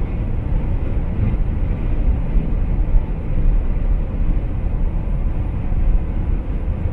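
A car drives steadily along a highway, its engine and tyres rumbling low.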